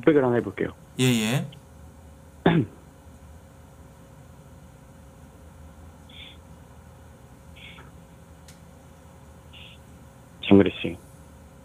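A young man speaks briefly into a close microphone in short bursts.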